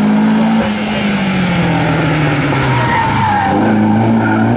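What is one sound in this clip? A rally car engine drops in pitch as the car slows into a bend.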